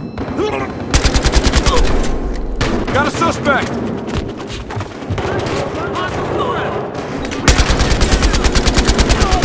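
An assault rifle fires in rapid automatic bursts.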